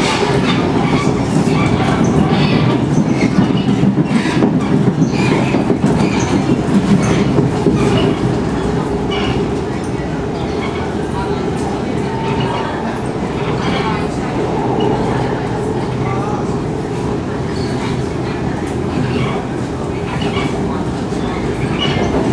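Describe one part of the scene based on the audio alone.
A train car rattles and creaks as it moves.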